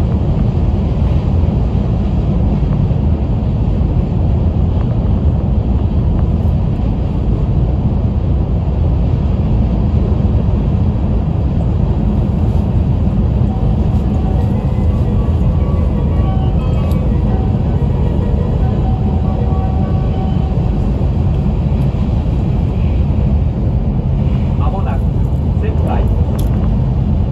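A train rumbles steadily along the track, heard from inside a carriage.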